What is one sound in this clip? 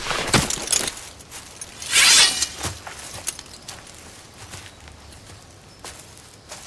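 Horses shift their hooves on leafy ground.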